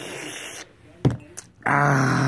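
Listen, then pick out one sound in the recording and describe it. A mug knocks against a table.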